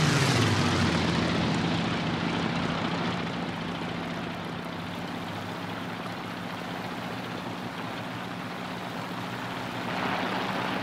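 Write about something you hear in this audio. A propeller plane's engine drones steadily, fading down and then swelling again.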